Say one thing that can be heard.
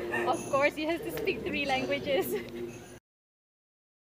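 A young woman talks cheerfully and laughs close by.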